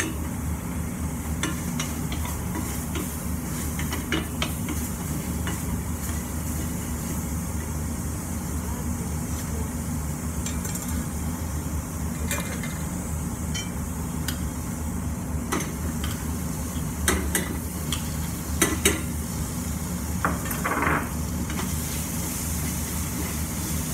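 A wooden spatula scrapes and clacks against a frying pan.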